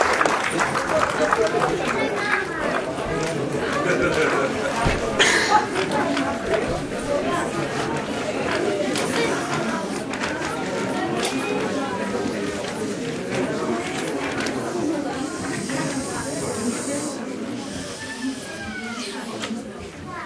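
A group of women sing together in a room.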